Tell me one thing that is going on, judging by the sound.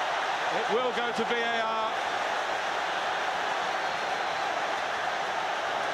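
A huge stadium crowd roars and cheers steadily, echoing widely.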